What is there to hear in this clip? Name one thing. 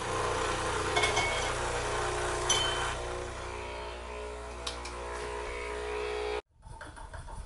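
An espresso machine hums steadily and loudly.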